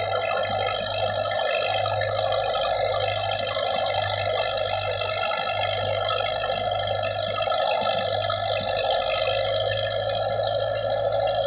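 A tractor engine runs with a steady loud drone.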